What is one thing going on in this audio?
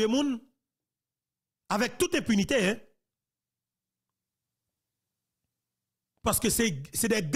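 A man speaks emphatically into a close microphone, in short bursts with pauses.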